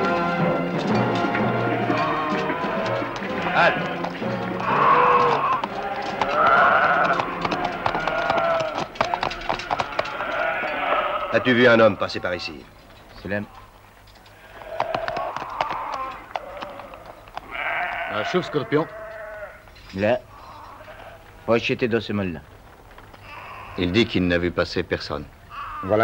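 A flock of sheep bleats.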